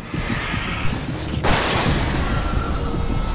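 A loud burst goes off with a roar.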